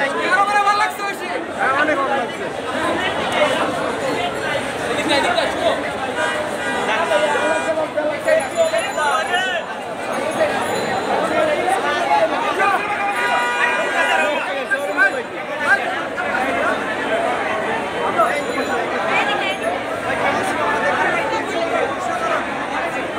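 A large crowd of men talks and shouts all around, outdoors.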